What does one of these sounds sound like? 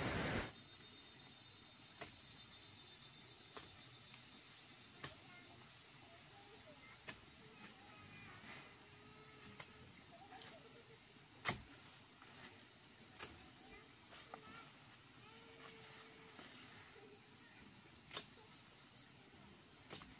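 Leaves rustle as a man picks from a bush.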